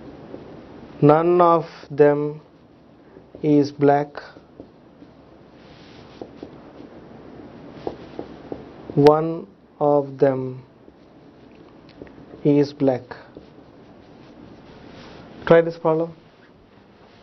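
A man speaks calmly in short phrases, as if explaining a lesson.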